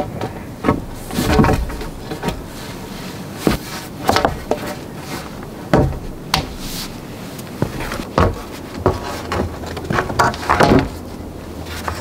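Wooden logs knock and thud against each other.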